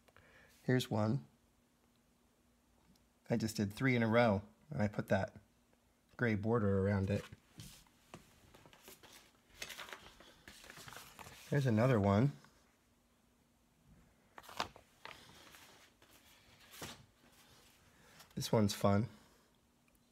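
Sheets of paper rustle as they are lifted and laid down.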